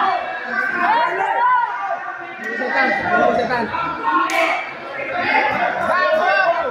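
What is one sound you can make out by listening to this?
A crowd of spectators shouts and cheers loudly.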